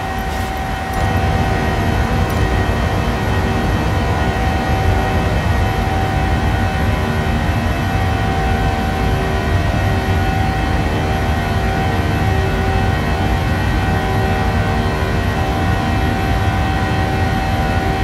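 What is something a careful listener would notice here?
A jet engine roars loudly and steadily just outside a cabin window.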